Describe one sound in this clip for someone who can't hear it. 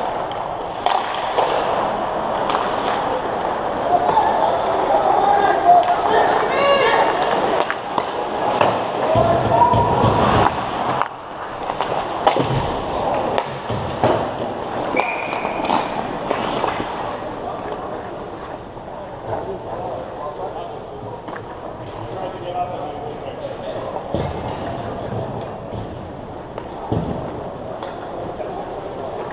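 Skates scrape and carve across the ice in a large echoing rink.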